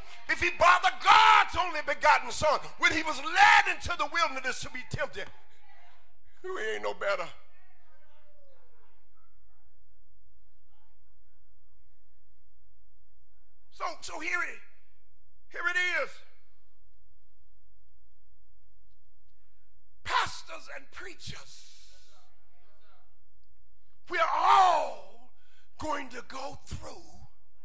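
A man preaches with animation into a microphone, in bursts with long pauses, in an echoing hall.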